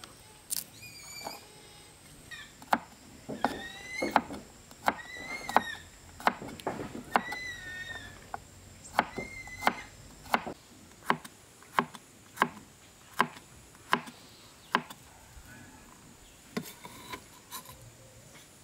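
A knife chops sharply on a cutting board in steady knocks.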